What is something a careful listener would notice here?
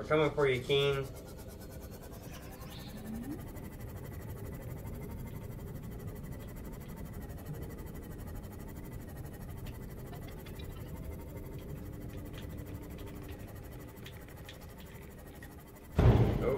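A low engine hum drones steadily underwater.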